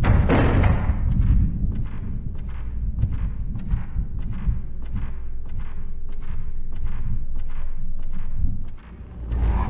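Footsteps tap steadily on a wooden floor.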